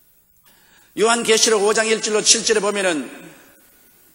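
An elderly man speaks loudly with animation through a microphone.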